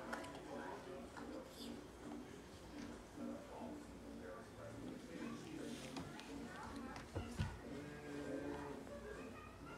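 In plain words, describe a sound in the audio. A toddler babbles softly nearby.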